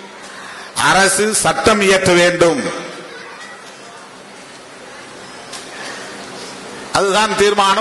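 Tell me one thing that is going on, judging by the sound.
A middle-aged man speaks forcefully into a microphone, heard through loudspeakers.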